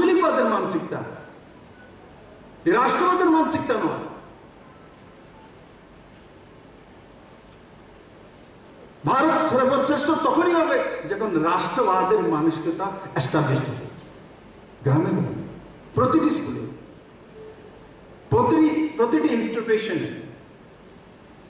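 A man speaks forcefully into a microphone, heard through loudspeakers, with long pauses.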